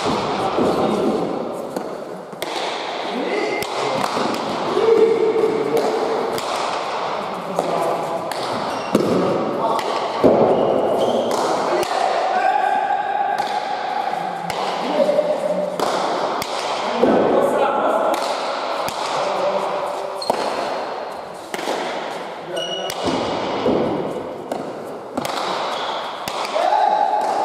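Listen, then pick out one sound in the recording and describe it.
Men shout and call out to each other across an echoing hall.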